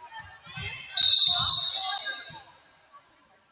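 A referee's whistle blows one long shrill blast in an echoing gym.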